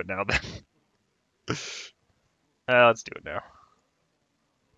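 A young man speaks casually into a close microphone.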